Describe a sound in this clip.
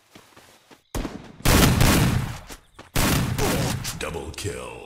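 Gunshots fire in rapid bursts in a video game.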